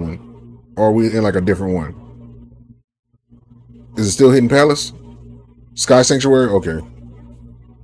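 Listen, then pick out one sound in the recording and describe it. A man speaks loudly and with animation into a close microphone, in short bursts.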